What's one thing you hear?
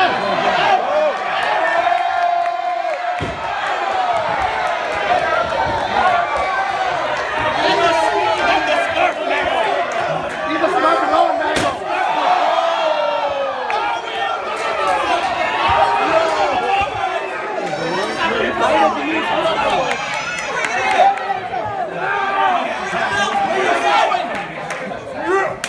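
A crowd of spectators chatters and calls out in a large hall.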